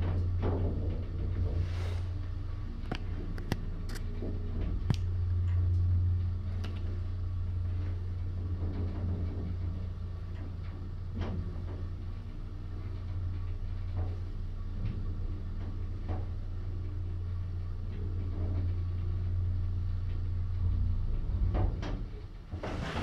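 An elevator hums steadily as it descends.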